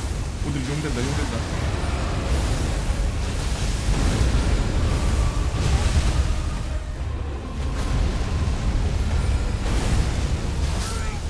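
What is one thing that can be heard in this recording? Fiery blasts roar and crackle in bursts.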